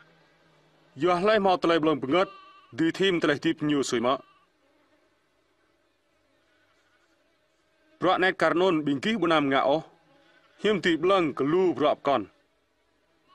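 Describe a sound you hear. A man speaks calmly and closely, in a few short phrases with pauses.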